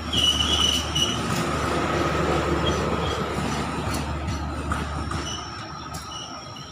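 A passenger train rumbles and clatters along the rails.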